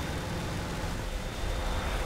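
An explosion booms close by.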